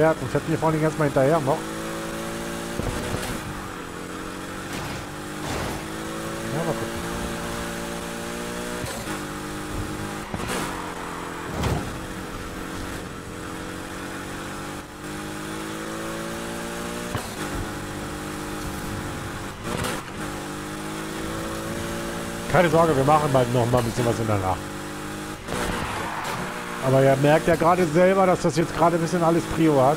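A race car engine roars and revs at high speed.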